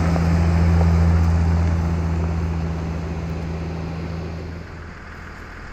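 Tyres crunch on gravel.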